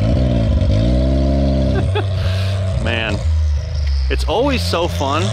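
An off-road vehicle's engine idles with a deep rumble.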